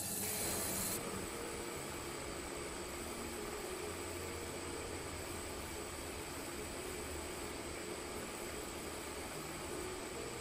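A sandblasting cabinet hisses steadily.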